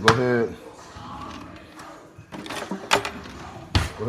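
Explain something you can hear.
A drawer slides open with utensils rattling.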